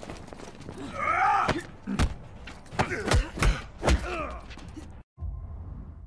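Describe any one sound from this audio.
Fighters grunt and trade heavy blows.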